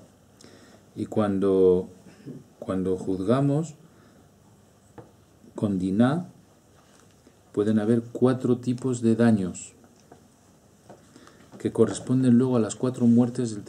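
An older man speaks calmly and slowly, in bursts with pauses, close to a microphone.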